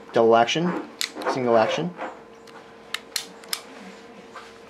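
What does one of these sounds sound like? A pistol's metal parts click sharply.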